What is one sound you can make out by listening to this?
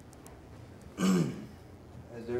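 A young man says a few words into a microphone.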